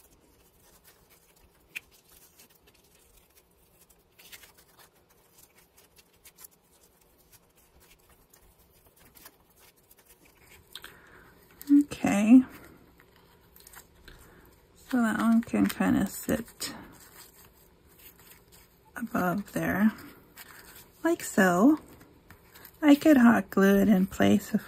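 Paper and ribbon rustle softly as hands handle them.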